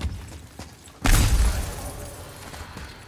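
Flames burst with a roar.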